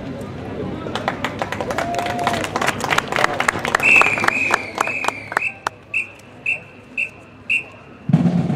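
A marching band's drums beat a fast, steady rhythm.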